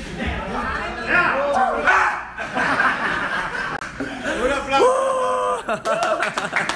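A young man talks excitedly and laughs close by.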